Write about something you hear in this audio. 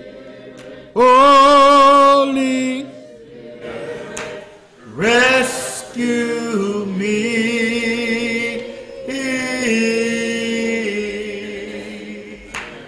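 An elderly man sings loudly and with feeling through a microphone in an echoing hall.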